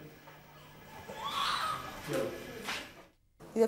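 A newborn baby cries loudly.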